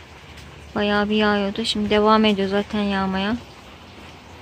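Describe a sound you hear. A cat meows loudly several times close by.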